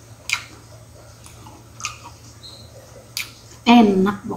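A middle-aged woman chews food with her mouth close to a microphone.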